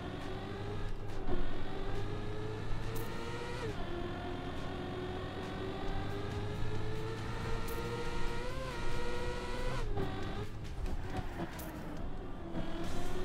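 A racing car's engine whines steadily, its pitch rising as it speeds up and dropping briefly now and then.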